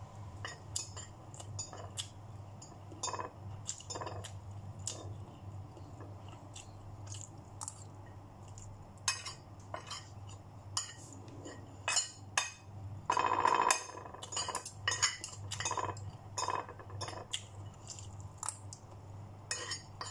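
Metal cutlery clinks and scrapes on a plate.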